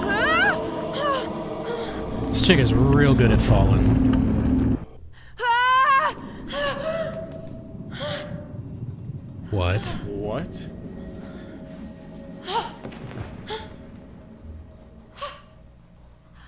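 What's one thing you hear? A young man talks close to a microphone, with animation.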